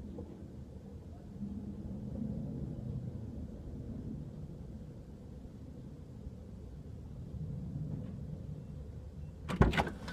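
A fuel pump hums low and steadily nearby.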